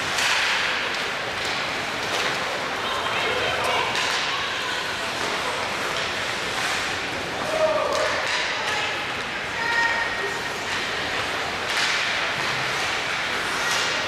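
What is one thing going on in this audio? Skates scrape and hiss across the ice in a large echoing rink.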